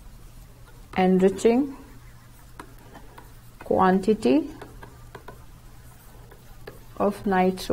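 A young woman speaks slowly and clearly into a close microphone, pausing between phrases.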